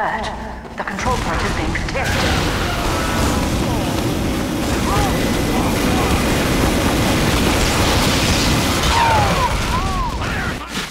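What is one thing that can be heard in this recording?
A flamethrower roars in loud bursts of rushing flame.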